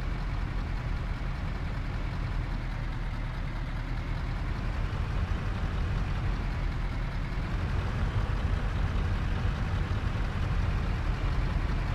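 A truck's diesel engine rumbles steadily as it drives slowly.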